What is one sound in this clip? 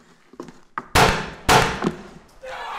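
A prop gun fires loud shots.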